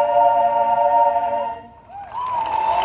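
A choir sings together outdoors.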